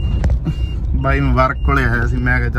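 A man speaks close up, with animation.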